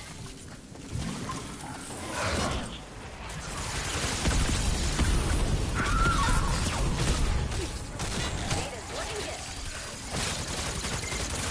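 Weapons fire and impacts crackle rapidly.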